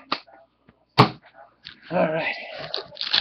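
A hand sets card packs down on a table with a soft tap.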